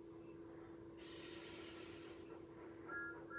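A cartoon steam engine hisses loudly from a television speaker.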